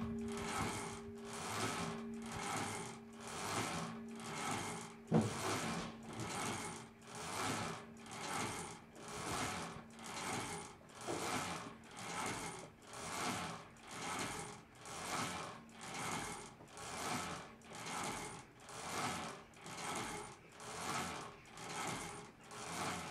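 A large church bell swings back and forth with a rhythmic rushing sound.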